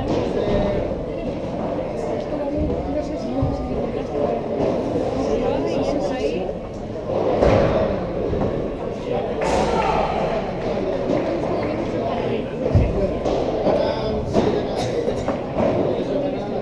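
Padel rackets hit a ball with sharp pops, echoing in a large indoor hall.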